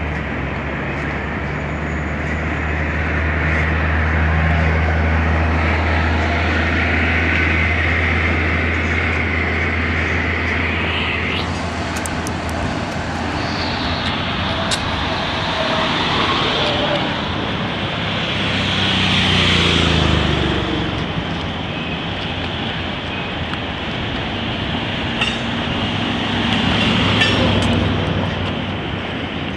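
A train rumbles and squeals past below, close by.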